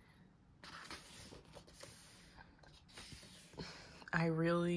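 Paper pages rustle as a book's page is turned.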